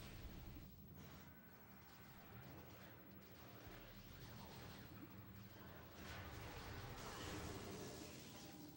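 Low electronic video game music hums steadily.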